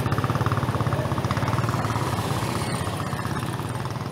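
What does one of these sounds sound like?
A motorbike engine drones as it passes close by.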